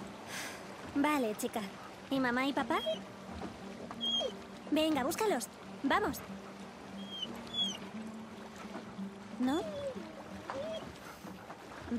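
A young girl speaks gently and affectionately, close by.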